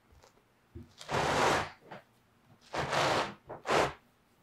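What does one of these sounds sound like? A crisp pizza crust crackles as hands squeeze it.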